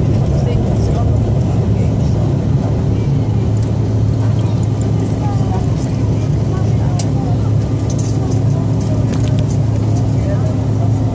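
An aircraft engine drones steadily and loudly from inside the cabin.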